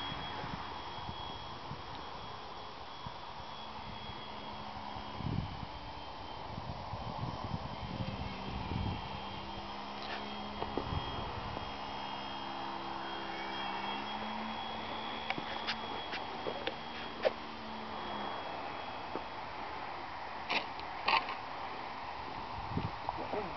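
Wind buffets the microphone outdoors.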